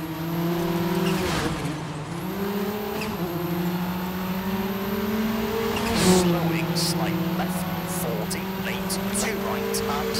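A rally car engine roars at high revs, dropping briefly at each gear change.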